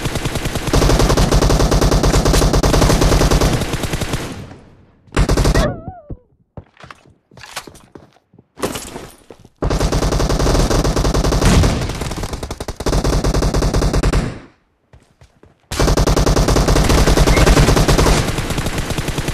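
An automatic rifle fires in rapid, loud bursts.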